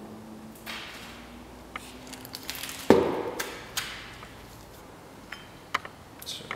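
A heavy tape dispenser is moved and set down on a padded heat press plate with knocks and thuds.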